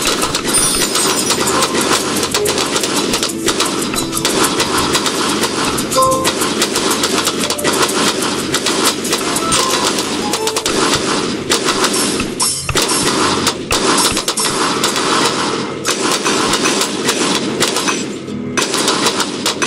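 Cartoon explosions bang and pop over and over in a video game.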